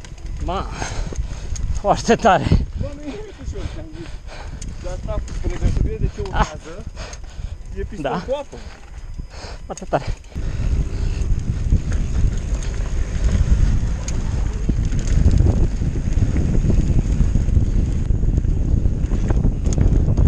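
Bicycle tyres rattle and crunch over rocks and gravel.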